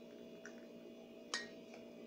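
Liquid pours into a metal bowl.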